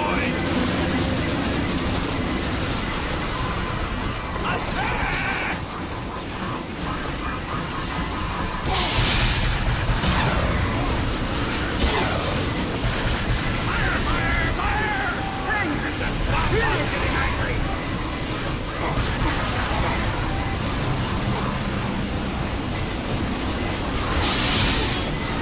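Gunfire and explosions boom and crackle in a video game battle.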